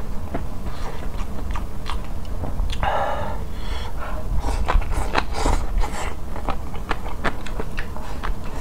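A young man chews wetly and smacks his lips, close to a microphone.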